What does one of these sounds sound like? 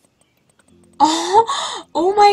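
A young woman exclaims loudly and with animation close to a microphone.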